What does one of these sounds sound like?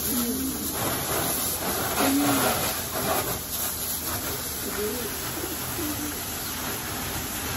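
Water sprays from a hose with a steady hiss.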